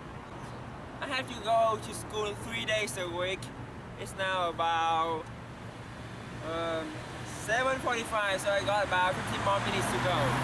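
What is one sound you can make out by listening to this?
A young man talks with animation outdoors.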